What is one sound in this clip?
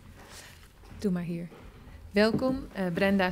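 A woman speaks loudly and with animation nearby.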